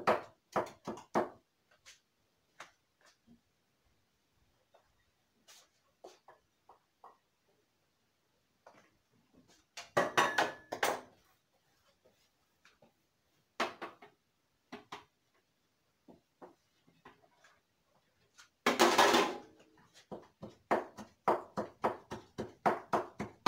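A pestle pounds rhythmically in a wooden mortar.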